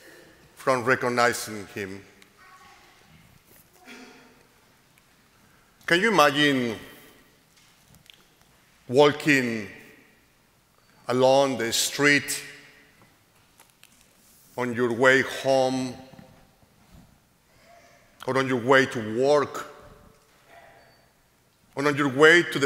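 A man chants short phrases through a microphone, pausing between them, in an echoing hall.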